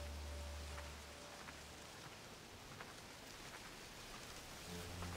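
Corn leaves rustle and brush as someone pushes through them.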